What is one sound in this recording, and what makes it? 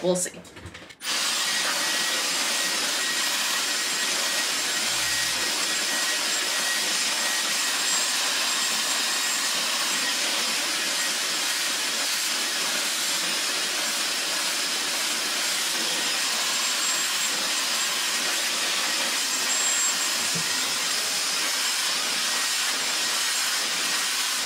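A hair dryer blows with a steady roaring hiss.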